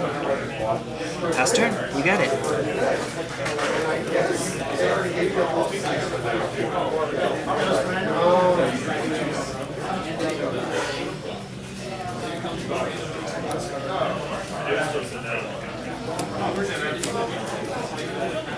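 Playing cards slide and tap on a soft mat.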